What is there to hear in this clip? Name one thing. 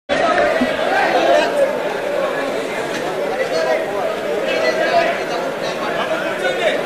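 A crowd of men and women chatter and murmur loudly all at once.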